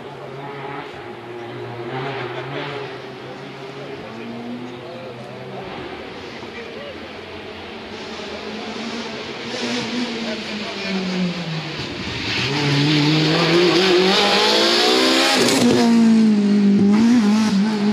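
A rally car engine roars closer, revs hard as it passes close by, and then fades away.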